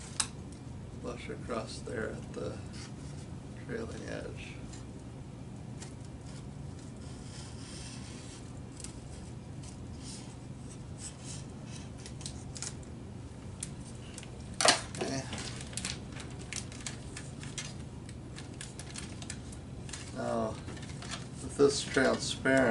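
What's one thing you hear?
Plastic film crinkles and rustles in hands.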